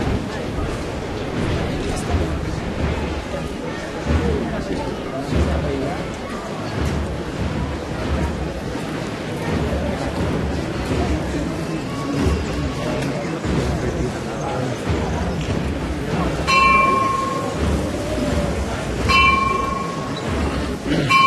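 A crowd murmurs and chatters nearby, outdoors.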